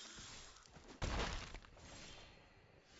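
A magical burst whooshes and booms.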